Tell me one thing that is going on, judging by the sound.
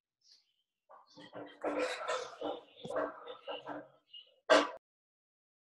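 A woman talks quietly over an online call.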